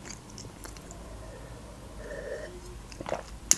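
A young woman gulps a drink close to a microphone.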